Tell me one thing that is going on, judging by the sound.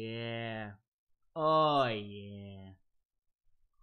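A young man makes long, drawn-out vocal sounds close to a microphone.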